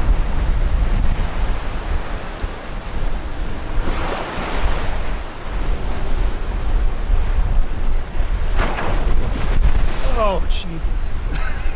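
Waves rush and splash against a moving boat's hull.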